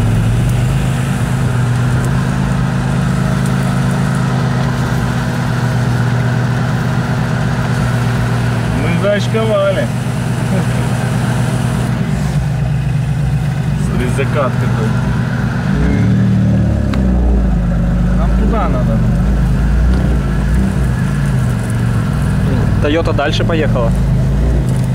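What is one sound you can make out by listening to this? An engine rumbles steadily nearby.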